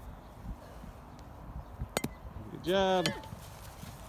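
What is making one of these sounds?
A plastic bat hits a ball with a hollow knock.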